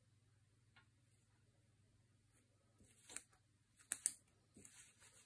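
Scissors snip at loose threads.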